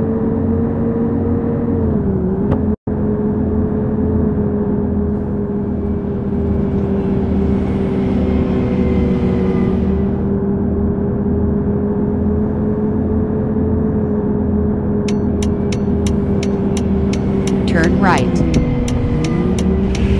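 A bus engine hums steadily as the bus drives along a road.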